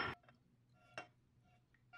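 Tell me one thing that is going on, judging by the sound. Liquid pours into a glass bowl.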